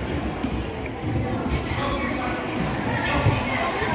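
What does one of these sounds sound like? A basketball bounces on a hard floor as a player dribbles.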